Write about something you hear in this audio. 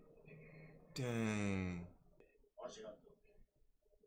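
A young man exclaims close to a microphone.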